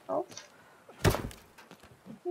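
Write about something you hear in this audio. A suitcase latch clicks open.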